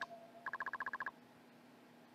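Rapid electronic blips chirp as game text types out.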